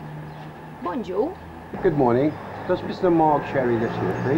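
An elderly man speaks outdoors.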